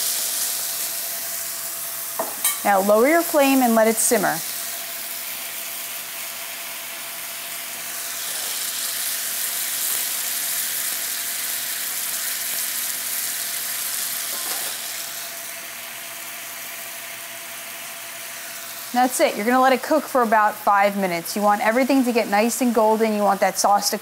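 Sauce sizzles and bubbles in a hot pan.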